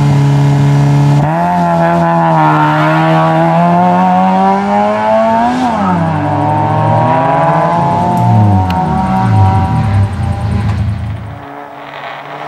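A rally car engine revs hard and roars as the car pulls away.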